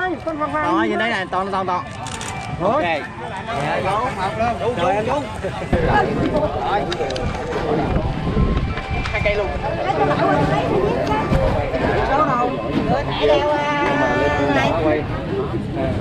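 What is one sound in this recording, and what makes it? Several men talk and call out with excitement close by.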